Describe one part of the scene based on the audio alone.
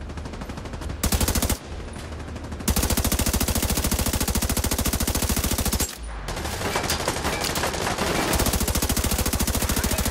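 A rifle fires rapid bursts of shots.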